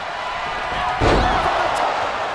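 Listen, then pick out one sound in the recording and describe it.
A heavy body slams down onto a wrestling ring mat with a loud thud.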